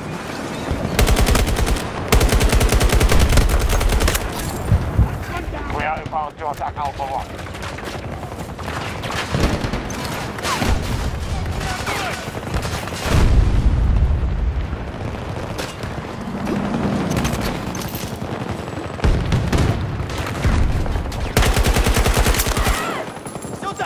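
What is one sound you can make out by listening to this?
Rapid gunfire bursts ring out in loud volleys.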